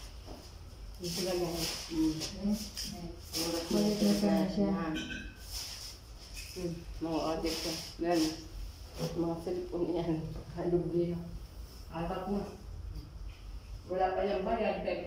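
A woman talks casually close by.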